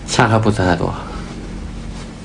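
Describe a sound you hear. A middle-aged man speaks calmly up close.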